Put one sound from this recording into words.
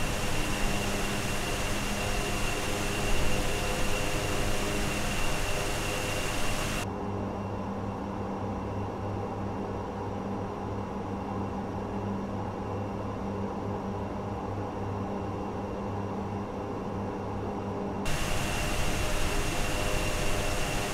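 Twin turboprop engines drone with a high whine while cruising.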